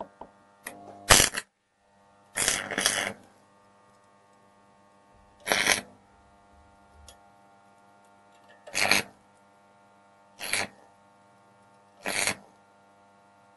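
An arc welder crackles and hisses in short bursts.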